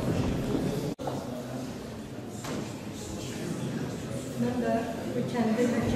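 A middle-aged woman speaks calmly and evenly.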